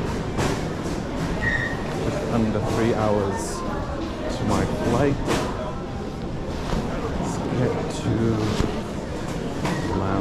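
Suitcase wheels roll across a smooth floor.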